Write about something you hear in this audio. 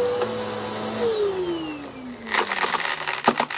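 A vacuum cleaner motor winds down to a stop.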